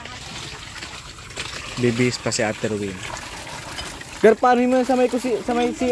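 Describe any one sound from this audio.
Water gushes from a hand pump and splashes into a basin.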